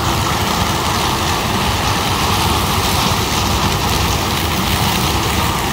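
A diesel combine harvester roars under load while harvesting corn.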